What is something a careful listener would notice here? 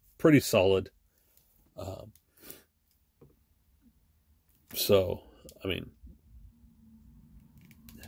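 A plastic toy figure's head creaks and clicks as hands twist it.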